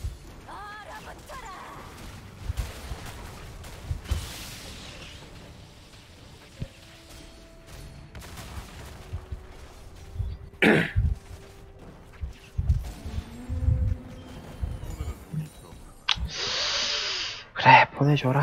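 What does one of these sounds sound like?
Game weapons strike with short thumps.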